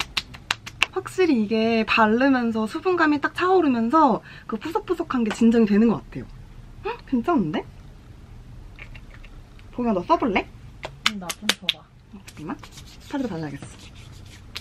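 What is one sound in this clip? A young woman talks cheerfully and animatedly, close by.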